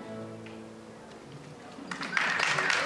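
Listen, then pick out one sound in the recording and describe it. A fiddle plays a sustained, fading note.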